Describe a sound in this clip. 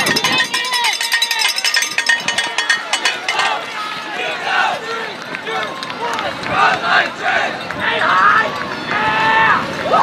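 A crowd of spectators cheers and shouts encouragement outdoors.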